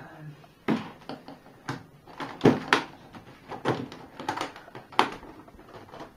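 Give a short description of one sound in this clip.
Metal latches on a case click and snap open.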